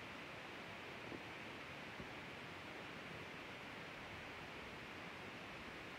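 A tissue rustles against skin close by.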